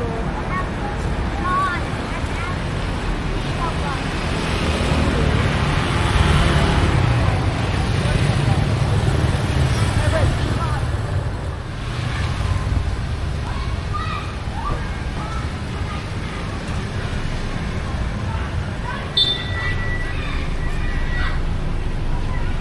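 Traffic rumbles steadily past on a busy street outdoors.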